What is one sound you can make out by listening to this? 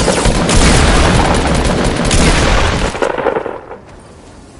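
Gunshots crack loudly in a video game.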